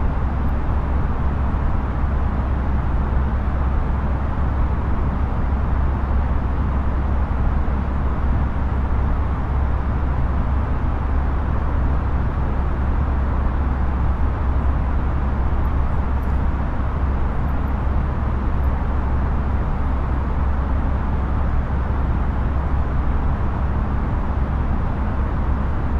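Jet engines drone steadily, heard from inside a cockpit.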